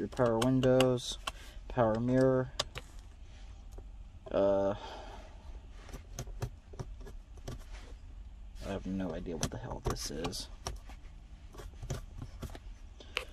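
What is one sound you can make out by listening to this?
Small plastic switches click as they are pressed.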